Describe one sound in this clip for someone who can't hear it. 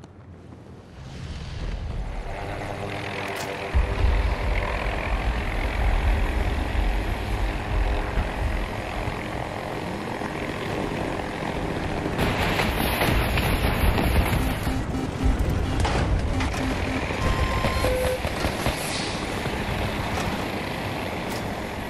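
A helicopter's rotor thumps and its engine roars steadily.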